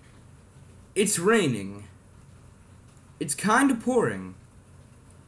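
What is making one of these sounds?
A young man speaks close by in two short bursts.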